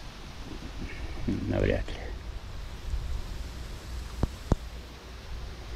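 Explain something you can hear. Small waves lap gently against wooden boards.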